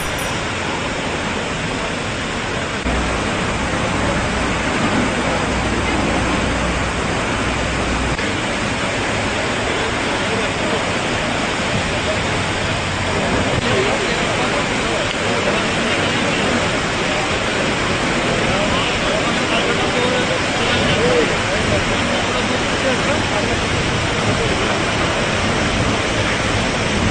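Water gushes and roars in a powerful jet from a burst pipe.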